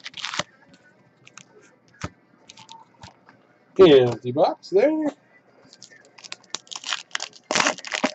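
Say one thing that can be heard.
Foil card packs rustle and crinkle as hands handle them.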